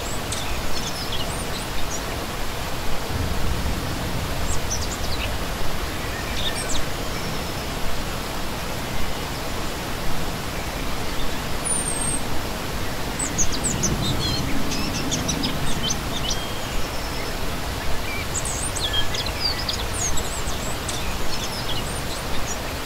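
A shallow stream rushes and splashes steadily over rocks.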